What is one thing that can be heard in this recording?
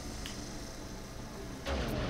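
Electricity crackles and buzzes.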